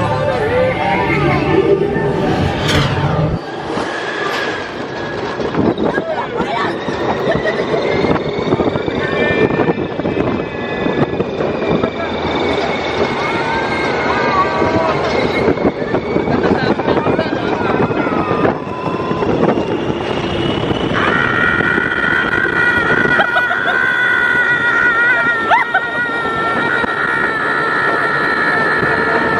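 Wind rushes loudly past on a fast, open ride.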